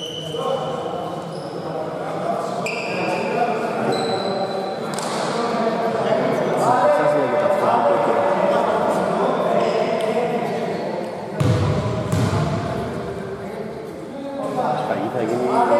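A basketball thuds on the floor.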